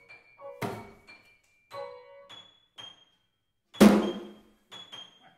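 A drum is struck a few times.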